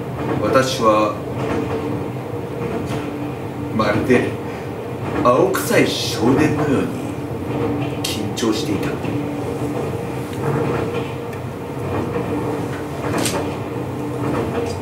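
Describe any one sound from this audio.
A woman reads aloud in a calm, measured voice in a reverberant hall.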